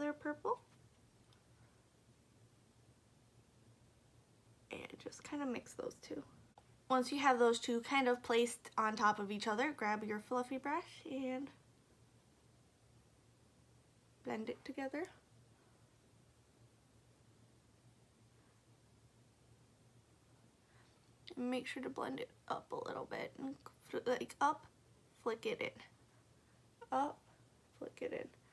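A young woman talks calmly and close to a microphone, in short bursts with pauses.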